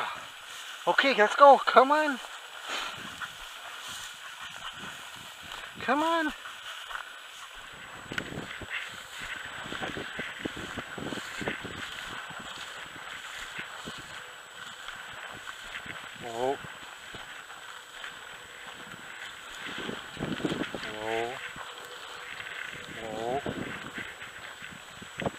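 Dry grass rustles and swishes underfoot with steady walking steps.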